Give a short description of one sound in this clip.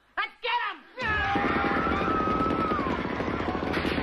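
A woman shouts in alarm.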